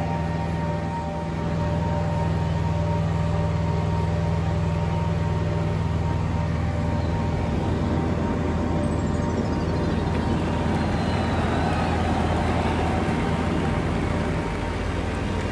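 A small plane's propeller engine drones steadily.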